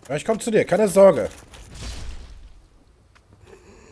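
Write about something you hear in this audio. A sword slashes and strikes flesh.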